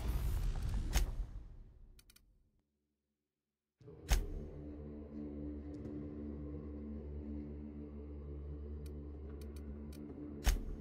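Soft menu clicks sound now and then.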